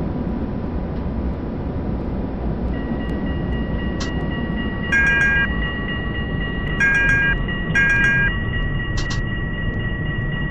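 A tram rumbles steadily along its tracks.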